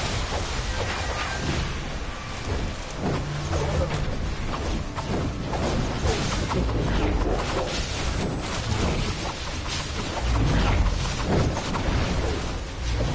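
Energy blasts and magic attacks crackle and boom in a video game battle.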